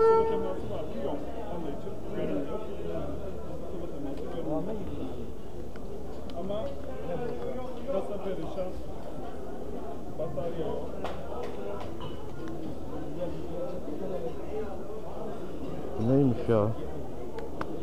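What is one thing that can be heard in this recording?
A busy crowd of men and women chatters nearby.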